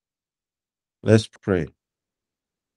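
A man speaks a few short words over an online call.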